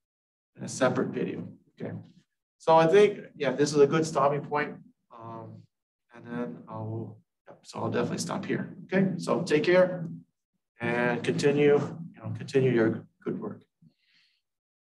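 A middle-aged man speaks calmly and clearly, close to a microphone, as if explaining.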